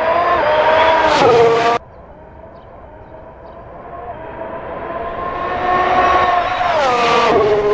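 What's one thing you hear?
A simulated Formula One racing engine screams at high revs and shifts down.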